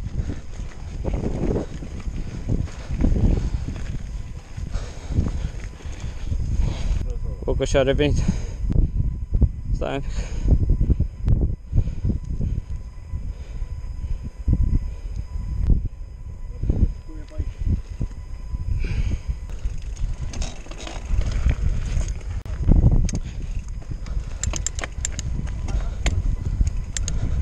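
Bicycle tyres crunch and rattle over a rocky gravel trail.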